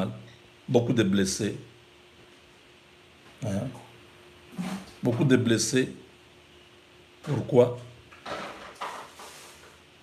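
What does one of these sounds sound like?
A middle-aged man speaks calmly and slowly, close to the microphone, in short bursts with pauses.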